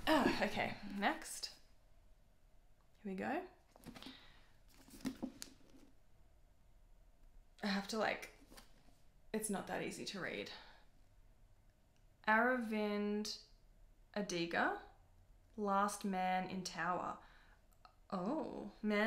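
A young woman talks calmly and close to the microphone, with pauses.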